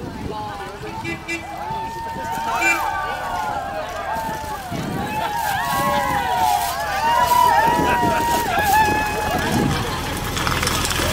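A crowd of people outdoors cheers and calls out.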